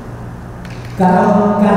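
An elderly man speaks into a microphone, heard through loudspeakers in an echoing hall.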